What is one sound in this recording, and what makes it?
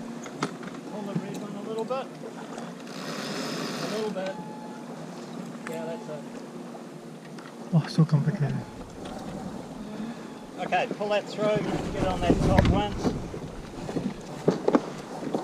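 Wind blows across the open water.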